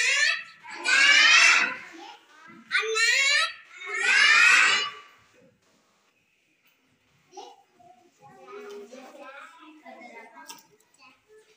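A young girl reads out loud, close by.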